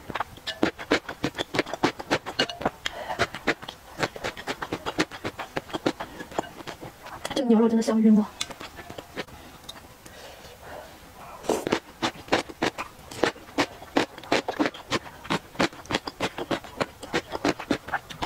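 Chopsticks clink against a glass bowl.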